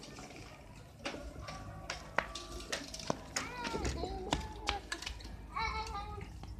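A bicycle rattles and clicks as it is handled.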